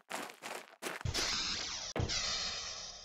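A sliding door whooshes open with a hiss.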